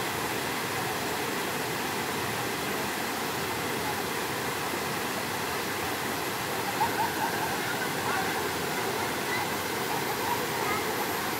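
A waterfall rushes steadily into a pool.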